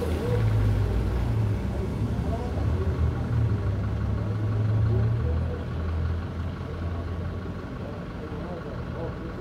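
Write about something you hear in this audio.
A bus engine rumbles nearby.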